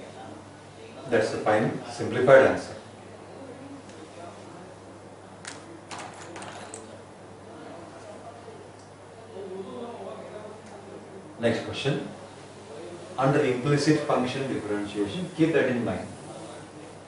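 An elderly man speaks calmly nearby, explaining in bursts.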